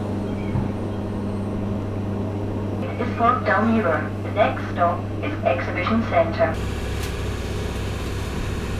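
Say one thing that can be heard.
A train rumbles and hums steadily as it moves.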